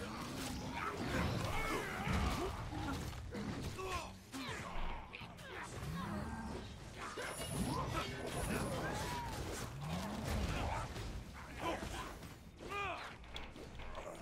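Weapons clash and thud in a fast fight.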